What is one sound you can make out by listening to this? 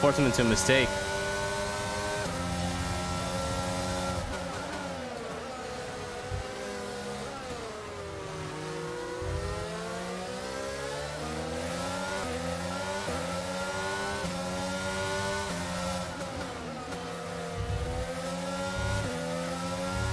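A racing car engine whines, revving up and down through gear changes.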